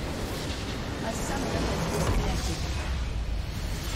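A game structure explodes and crumbles.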